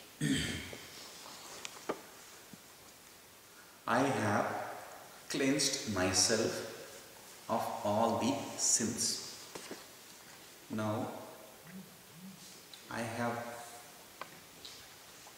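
A man speaks calmly and slowly, with pauses between phrases.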